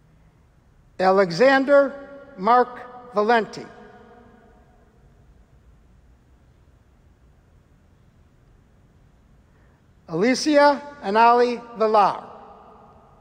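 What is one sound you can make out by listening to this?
A man reads out names through a microphone in an echoing hall.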